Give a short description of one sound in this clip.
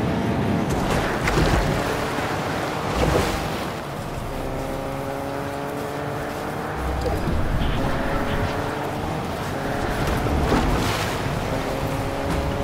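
Water splashes as a car drives through a stream.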